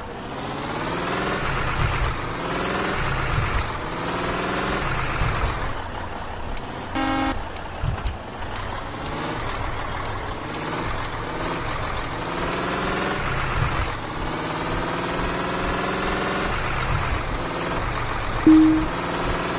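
A coach bus engine accelerates, rising in pitch and dropping back with each gear change.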